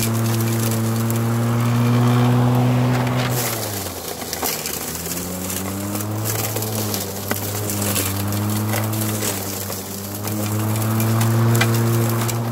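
Dry brush crackles and rustles under a lawn mower.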